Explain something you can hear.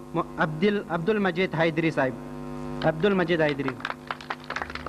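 A young man recites loudly and with feeling into a microphone, heard through a loudspeaker.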